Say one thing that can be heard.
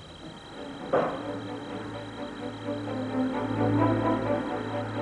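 A lathe whirs as it turns.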